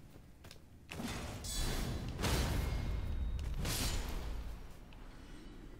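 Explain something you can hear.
A heavy sword whooshes through the air and strikes.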